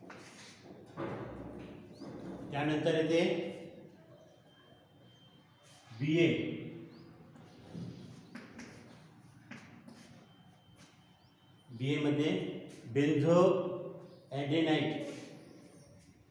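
A man speaks in short bursts nearby, as if explaining.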